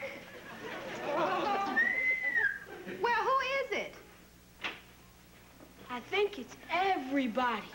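A boy speaks loudly and excitedly.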